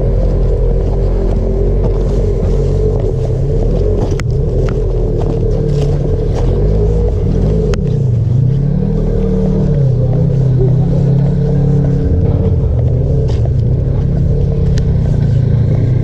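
Tyres crunch over dry leaves and dirt.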